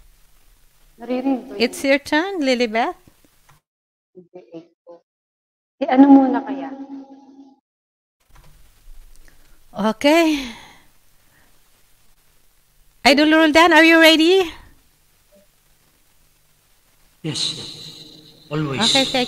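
A woman sings with a wavering voice through a microphone over an online call.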